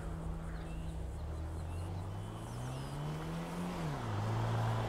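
A car engine revs up, rising in pitch.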